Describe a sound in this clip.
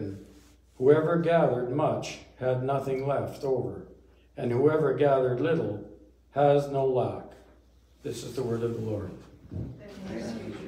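An elderly man reads aloud through a microphone and loudspeaker.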